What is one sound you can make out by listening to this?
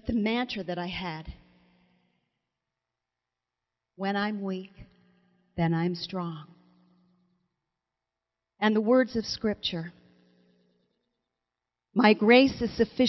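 A middle-aged woman speaks expressively into a microphone, with pauses between phrases.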